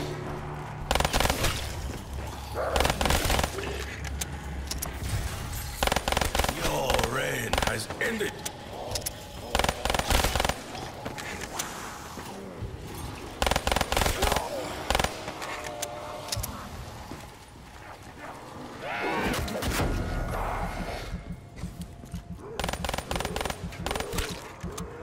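Gunshots fire in quick, loud bursts.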